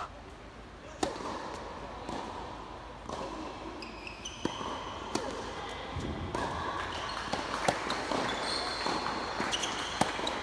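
Tennis balls are struck hard with rackets, echoing in a large hall.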